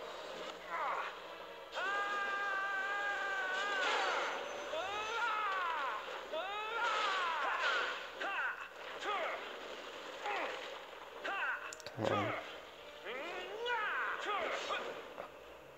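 Magic spell effects swoosh and ring with rising and falling tones.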